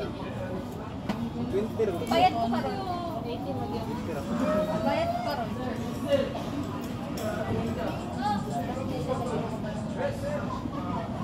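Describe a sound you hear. Young women chat nearby, several voices overlapping.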